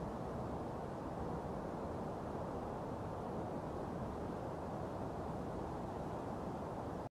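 Wind blows steadily with a low, rushing sound outdoors.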